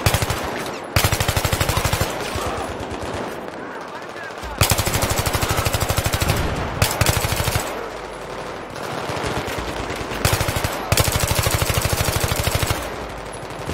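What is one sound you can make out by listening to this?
An assault rifle fires in rapid automatic bursts.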